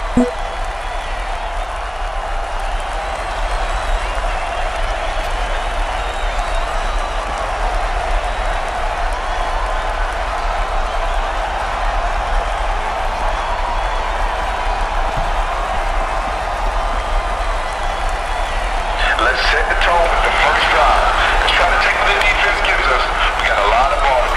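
A large stadium crowd roars steadily, swelling into louder cheering near the end.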